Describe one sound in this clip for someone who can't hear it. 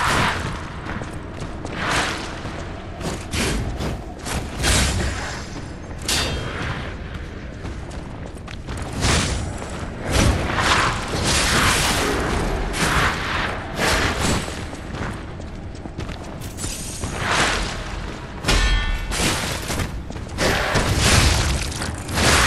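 Heavy sword blows swish and strike with loud impacts.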